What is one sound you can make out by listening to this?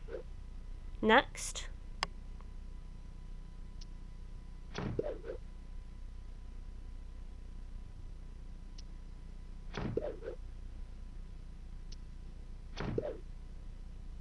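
Short electronic menu chimes sound now and then.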